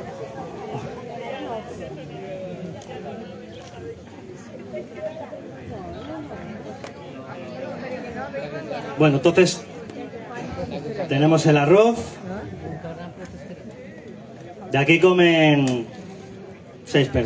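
A man talks to an audience through a microphone.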